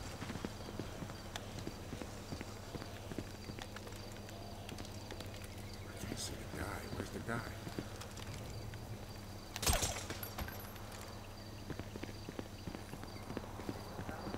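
Footsteps tap quickly on hard pavement.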